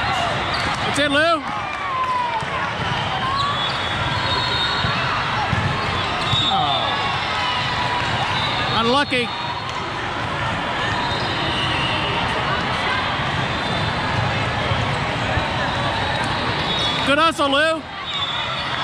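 A referee's whistle blows sharply, a few times.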